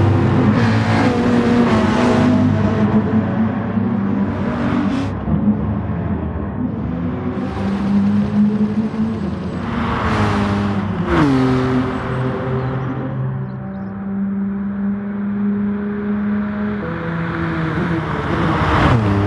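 Racing car engines roar and whine as they shift through gears.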